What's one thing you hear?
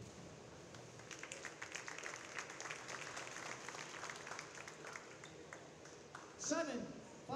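A crowd claps and cheers in an echoing hall.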